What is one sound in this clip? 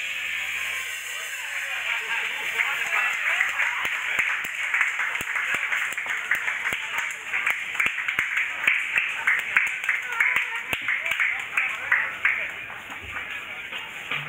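Dancers' feet tap and shuffle on a hard floor.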